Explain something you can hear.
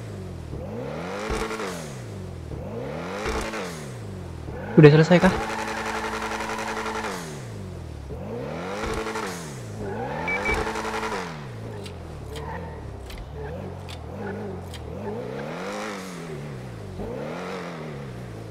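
A sports car engine revs up and down over and over, with a deep roar.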